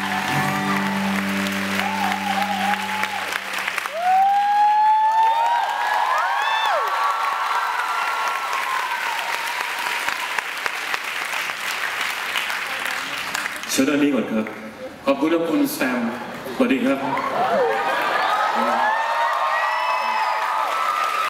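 A crowd cheers and screams loudly in a large hall.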